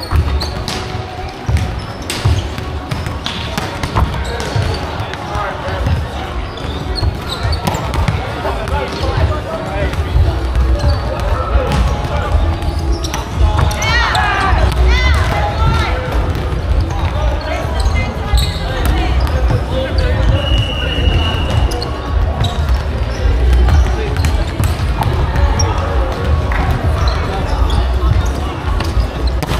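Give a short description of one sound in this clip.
Young people shout and call out to each other.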